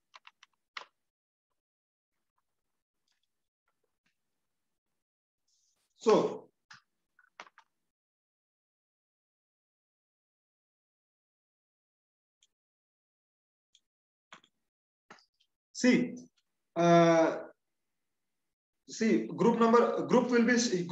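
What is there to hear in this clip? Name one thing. A man speaks calmly into a close microphone, with long pauses.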